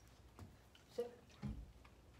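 A puppy gives a short, high yelp close by.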